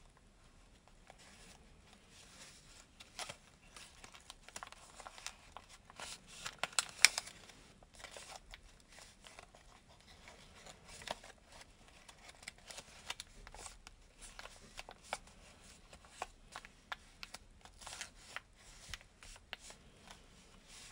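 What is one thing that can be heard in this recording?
Paper rustles and crinkles as hands fold it close by.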